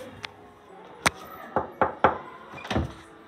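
A hand knocks sharply on a wooden door.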